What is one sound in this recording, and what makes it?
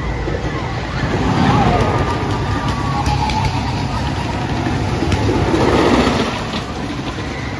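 A roller coaster train rumbles and clatters along a wooden track.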